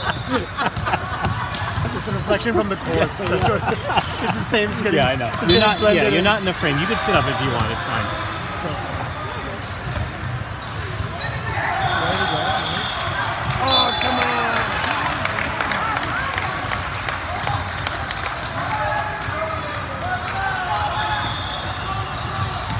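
Many young people chatter and shout in a large echoing hall.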